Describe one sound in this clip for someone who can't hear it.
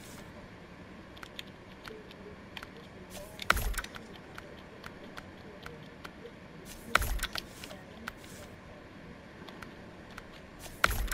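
Soft menu clicks tick as selections change.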